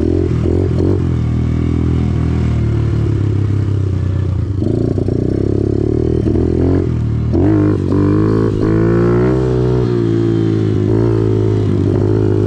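A motorcycle engine runs close by, revving up and down.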